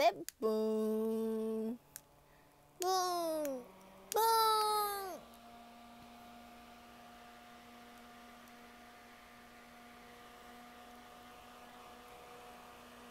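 A small electric fan whirs with a steady hum.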